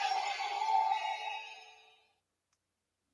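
A toy belt plays a loud electronic sound effect that fades out.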